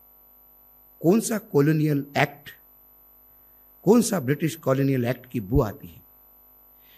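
A middle-aged man speaks emphatically into a microphone.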